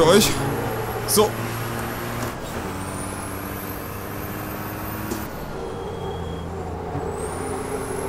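A truck engine drones steadily, its pitch shifting with the gears.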